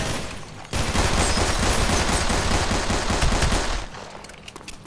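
A pistol fires a rapid series of loud shots.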